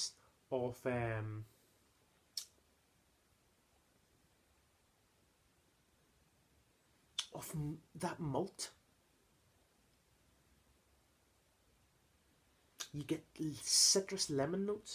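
A young man speaks casually and close by, in short bursts.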